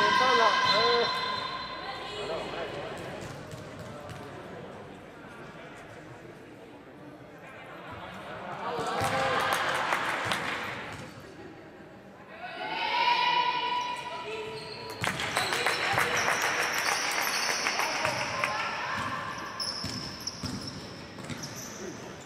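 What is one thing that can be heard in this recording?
Young women call out to each other in an echoing hall.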